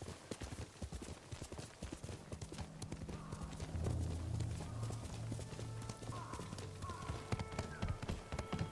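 Hooves pound rapidly as a horse gallops.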